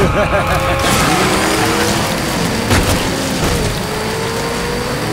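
A car engine roars steadily as it speeds along.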